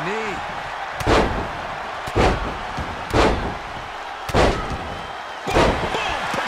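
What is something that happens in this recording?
Bodies thud heavily onto a wrestling mat again and again.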